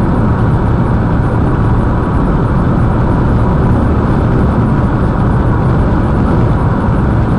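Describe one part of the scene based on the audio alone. Tyres roar steadily on the road from inside a moving car.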